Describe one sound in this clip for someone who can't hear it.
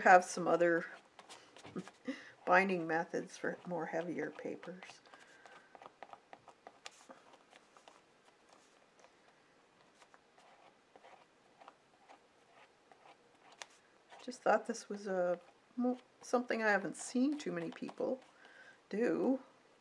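A brush swishes softly over a plastic sheet.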